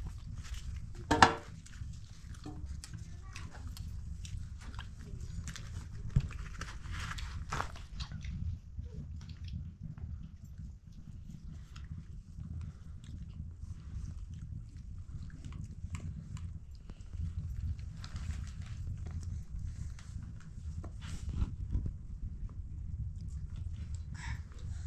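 Flatbread rustles and tears as hands break it.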